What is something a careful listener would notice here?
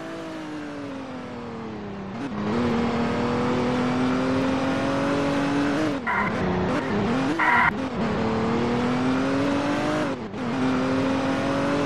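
A car engine hums and rises and falls in pitch as it speeds up and slows down.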